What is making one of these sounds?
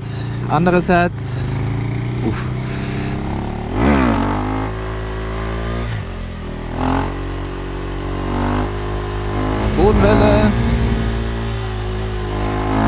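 A motorcycle engine drones steadily and revs up and down as it rides.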